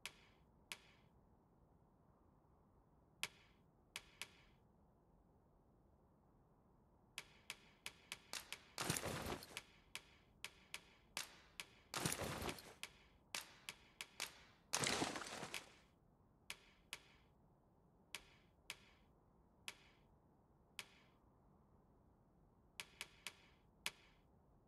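Short menu clicks tick in quick bursts.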